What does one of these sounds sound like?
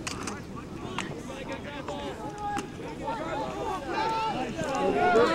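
A crowd of spectators cheers and shouts excitedly outdoors.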